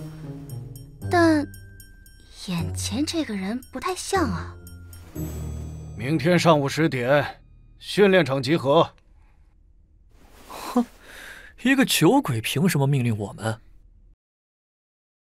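A young man speaks quietly and hesitantly.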